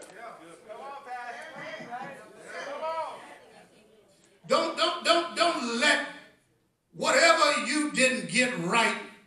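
A man preaches with animation into a microphone, heard through a loudspeaker in an echoing hall.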